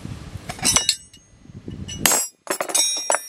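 An impact wrench hammers and whirs loudly in short bursts.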